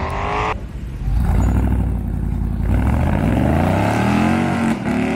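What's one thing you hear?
A car engine roars loudly and revs up as the car pulls away.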